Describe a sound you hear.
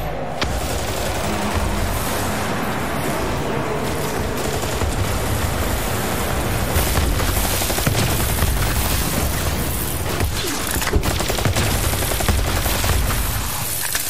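Energy weapons fire in rapid bursts with buzzing zaps.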